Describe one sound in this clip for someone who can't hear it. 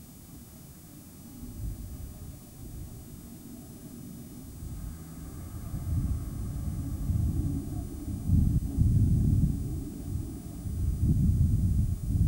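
Wind buffets the microphone outdoors in gusts, growing stronger.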